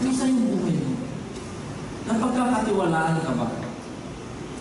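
A young man speaks calmly into a microphone in an echoing hall.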